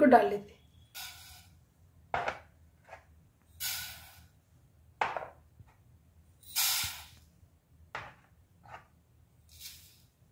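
Dry seeds pour and patter into a metal pan.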